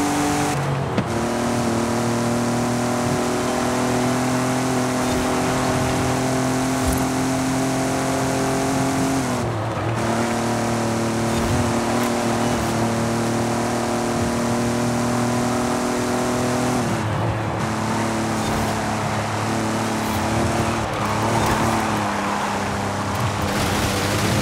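A car engine roars steadily at high revs, dropping briefly with each gear change.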